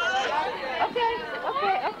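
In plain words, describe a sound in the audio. A toddler girl giggles.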